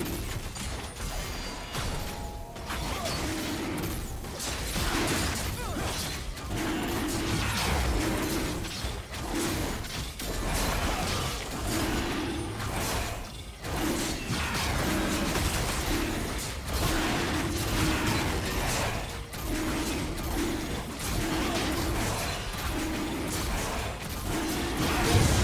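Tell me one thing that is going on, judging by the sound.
Fantasy combat sound effects of magic blasts and weapon strikes crackle and clash rapidly.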